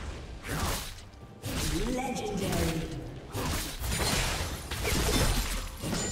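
Fantasy battle sound effects of spells and blows clash and crackle.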